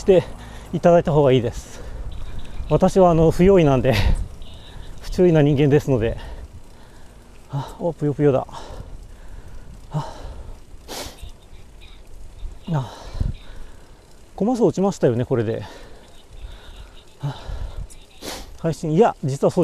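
Bicycle tyres roll steadily on an asphalt road.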